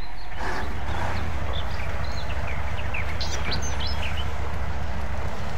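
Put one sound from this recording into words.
A heavy truck engine rumbles steadily at low revs.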